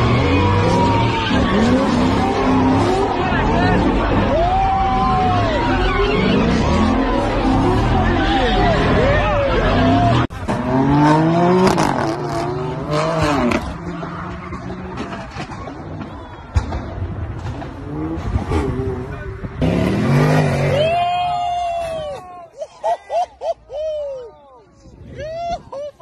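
Car tyres screech and squeal in long bursts.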